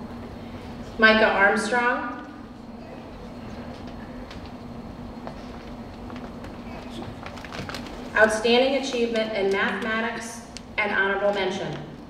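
A man announces names over a loudspeaker in a large echoing hall.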